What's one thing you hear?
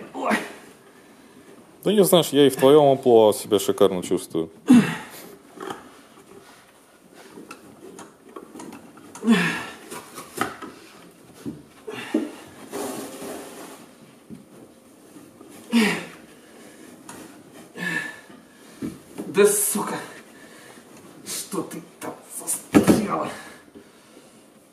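Thick carpet padding rustles and scrapes as it is pulled up.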